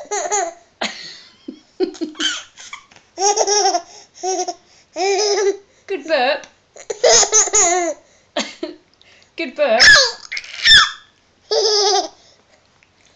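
A baby babbles and squeals happily close by.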